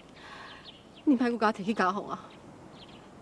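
A young woman answers firmly, close by.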